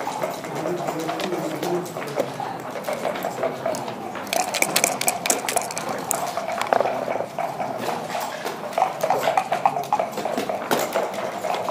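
Backgammon checkers click as they are moved on a wooden board.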